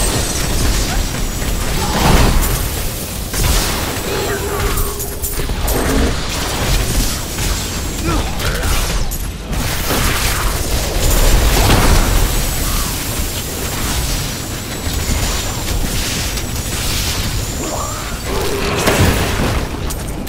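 Magic blasts burst with sharp booms.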